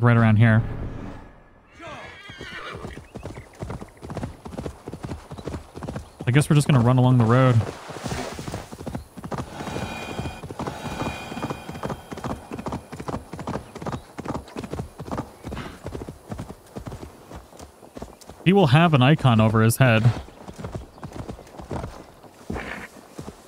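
A horse's hooves thud steadily at a gallop.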